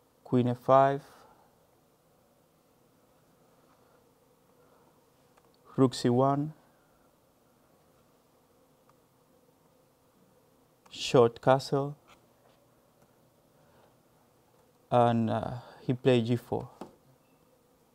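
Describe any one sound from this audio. A young man speaks calmly in short phrases through a microphone, with pauses between them.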